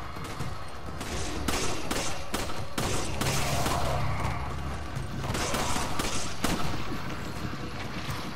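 Gunshots crack out one after another, echoing briefly.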